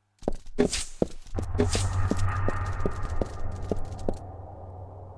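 Footsteps run quickly across stone in an echoing space.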